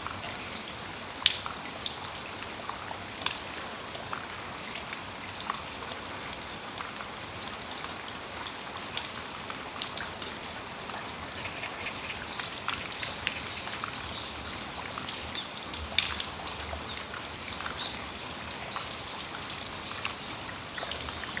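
Light rain patters softly outdoors.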